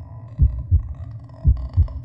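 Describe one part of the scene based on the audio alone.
A man murmurs briefly close to a microphone.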